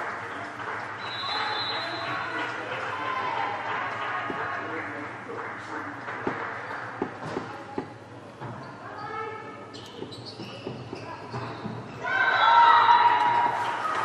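A volleyball is struck with sharp smacks in a large echoing hall.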